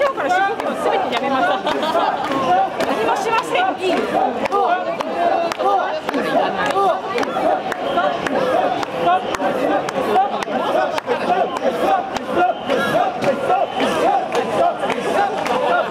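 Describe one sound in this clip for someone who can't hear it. A crowd of men chants loudly in rhythm, close by.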